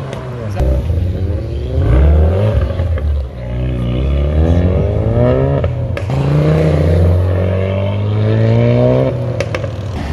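A sports car's engine revs loudly and roars as it accelerates away up close.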